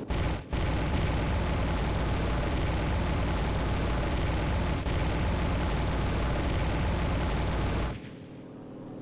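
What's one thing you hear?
Wind rushes loudly past an aircraft, then drops away.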